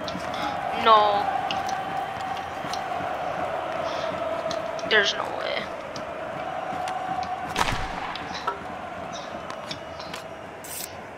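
Hockey sticks knock against a puck now and then.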